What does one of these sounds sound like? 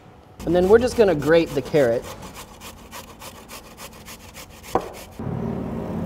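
A carrot rasps against a metal grater.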